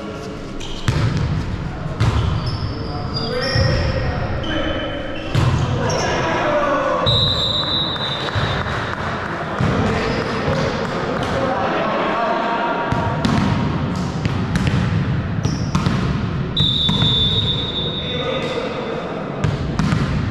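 A volleyball thumps as players hit it back and forth in a large echoing hall.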